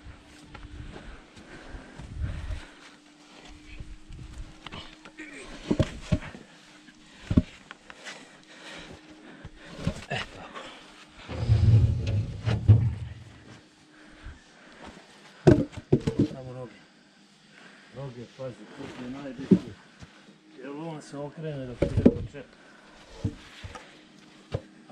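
Heavy logs knock and thud against each other as they are stacked.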